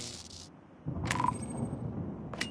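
A short game chime rings as a task is completed.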